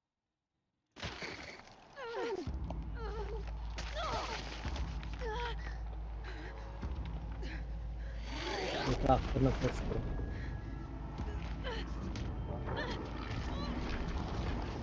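A young woman grunts and gasps with effort.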